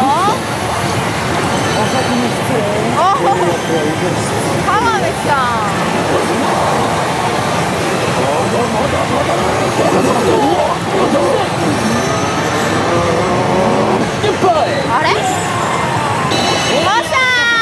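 A slot machine plays loud electronic music and sound effects.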